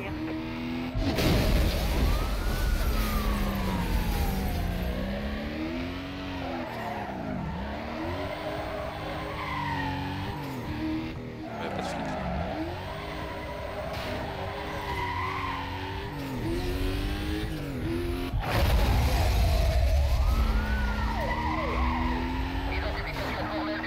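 A police siren wails and rises and falls.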